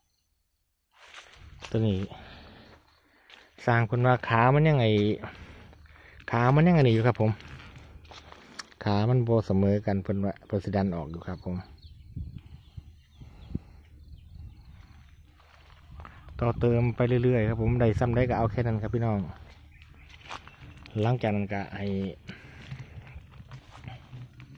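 A man talks calmly close by, explaining.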